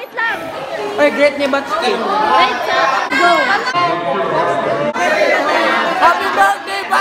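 A crowd of young people chatters and laughs in an echoing hall.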